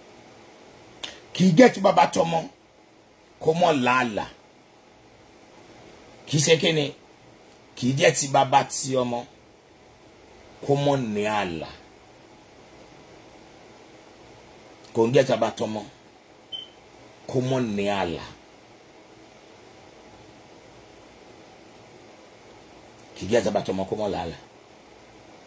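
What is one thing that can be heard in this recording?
A middle-aged man speaks calmly close by, in short phrases with pauses.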